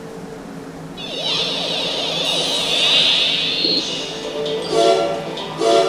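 Swirling electronic whooshes sweep up and down in pitch.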